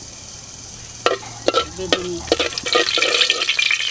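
A metal spatula scrapes and clinks against a metal pot.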